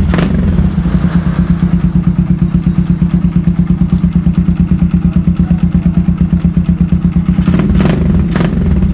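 A small single-cylinder four-stroke motorcycle idles, its exhaust thumping evenly.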